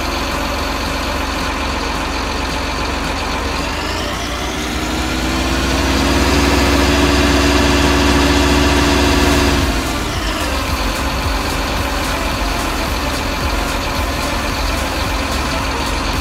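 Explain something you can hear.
A heavy diesel engine rumbles steadily.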